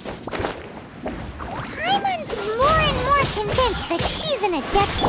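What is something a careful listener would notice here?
A blade whooshes and strikes in quick blows.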